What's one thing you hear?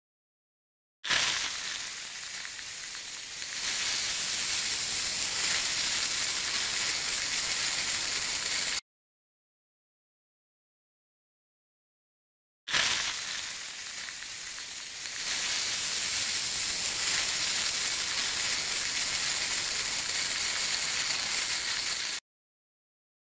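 A can of shaving cream hisses as foam sprays out.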